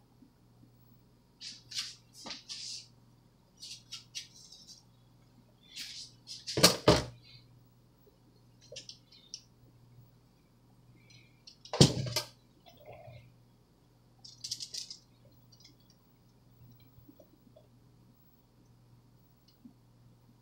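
A metal spatula scrapes softly across frosting.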